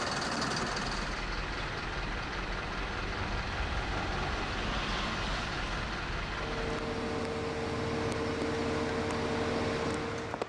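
A crane engine rumbles steadily.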